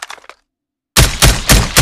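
A marksman rifle fires several shots in quick succession.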